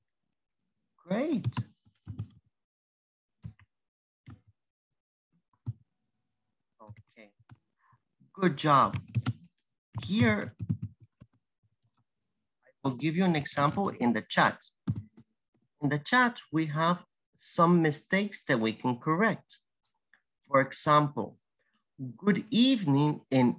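A man speaks calmly through an online call, heard over a computer microphone.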